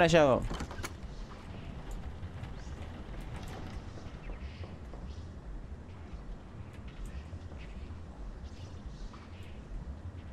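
A young man speaks quietly into a nearby microphone.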